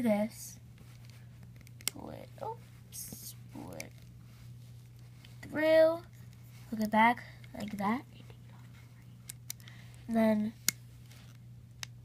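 Rubber bands snap and click softly against a plastic hook.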